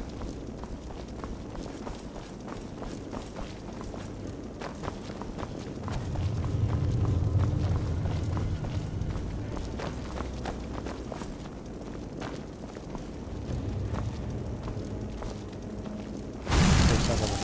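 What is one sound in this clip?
Footsteps tread on a stone floor in an echoing hall.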